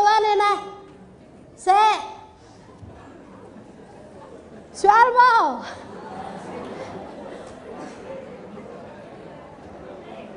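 A woman speaks animatedly into a microphone, her voice rising in bright bursts.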